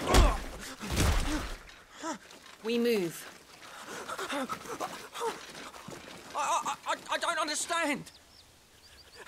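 A middle-aged man pleads in a shaky, anxious voice.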